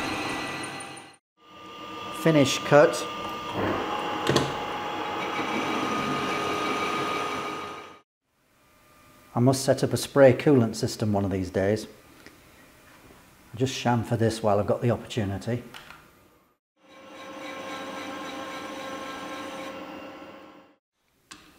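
A metal lathe spins with a steady whirring hum.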